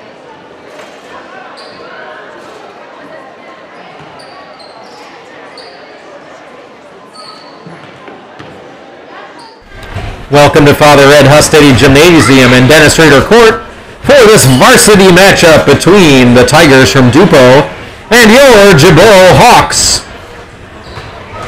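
Basketballs bounce on a wooden floor.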